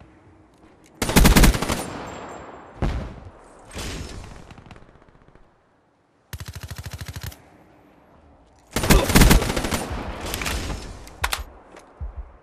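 Rapid gunfire rings out in loud, sharp bursts.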